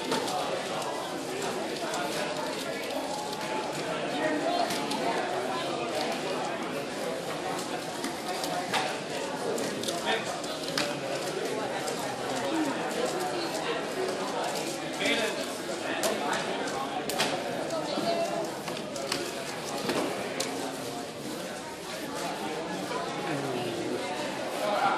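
Plastic puzzle cubes click and rattle as they are twisted quickly.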